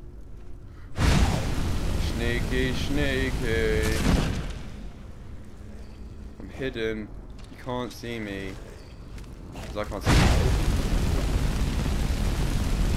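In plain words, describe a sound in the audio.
Flames roar and crackle loudly in sudden bursts.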